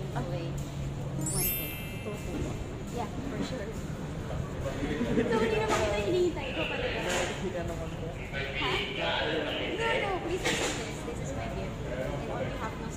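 A young woman talks warmly up close.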